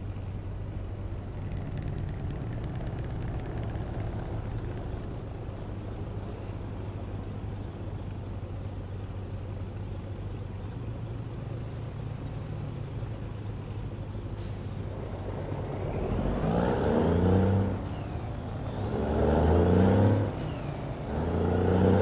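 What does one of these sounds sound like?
A heavy truck engine idles with a steady low rumble.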